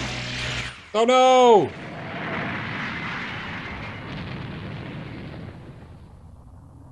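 A huge explosion booms and roars, then rumbles away.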